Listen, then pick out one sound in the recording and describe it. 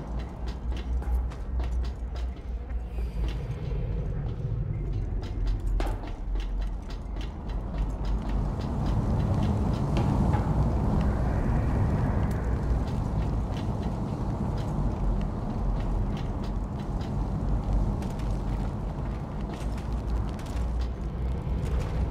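Footsteps thud on metal and wooden walkways.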